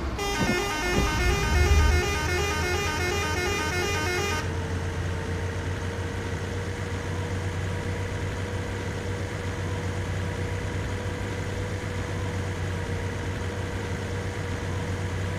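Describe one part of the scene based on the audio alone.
A bus engine hums steadily as it drives along.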